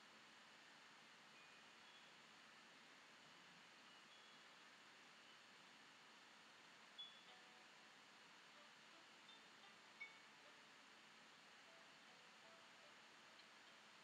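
A brush softly strokes across paper.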